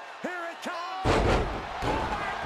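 A body crashes onto a wrestling ring mat with a heavy thud.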